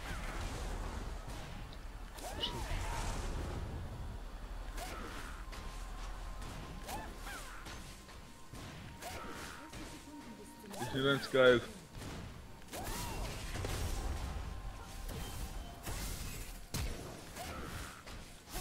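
Game spell effects whoosh and zap in short bursts.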